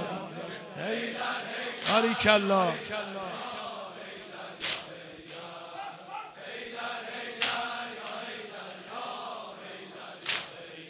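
A man sings a mournful chant loudly through a microphone in a large echoing hall.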